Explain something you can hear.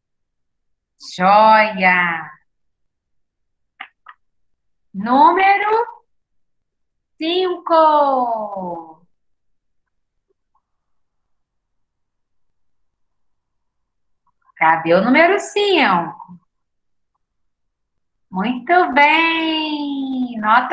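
A young woman speaks clearly and with animation, heard through a microphone on an online call.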